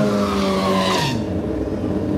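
A motorcycle tyre squeals as it spins on the track.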